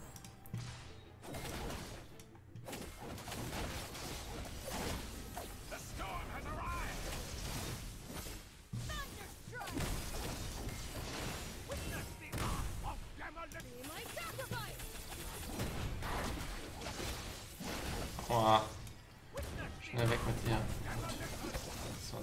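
Game battle effects clash and burst.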